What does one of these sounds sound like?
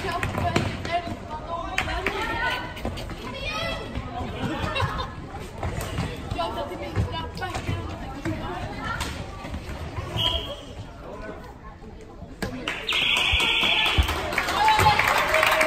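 Women shout and call out to each other in a large echoing hall.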